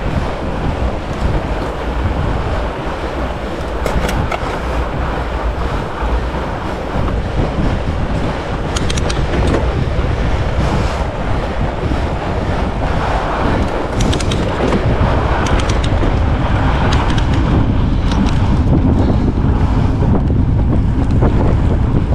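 Fat bike tyres crunch and hiss over packed snow.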